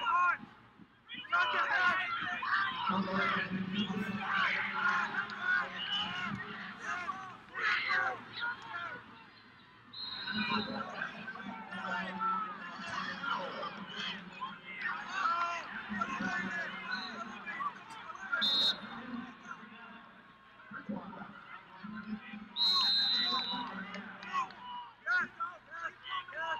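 A crowd shouts and cheers in a large echoing arena.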